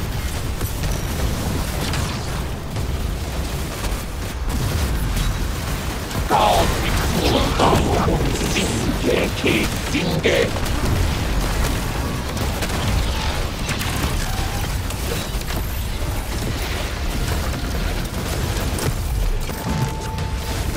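Rapid gunfire rattles amid explosions in a video game.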